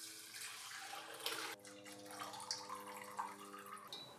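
Liquid trickles and drips into a glass jug.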